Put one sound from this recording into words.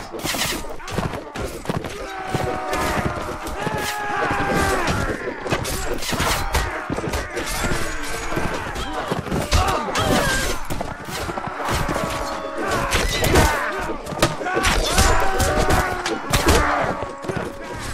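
Metal weapons clash and strike in a battle.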